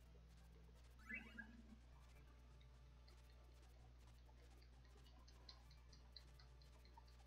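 Short electronic game sound effects chirp and blip.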